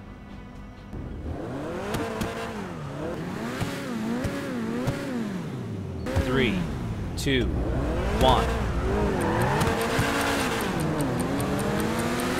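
A sports car engine revs up and down repeatedly.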